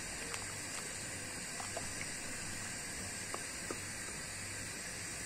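Liquid simmers in a pot with soft bubbling pops.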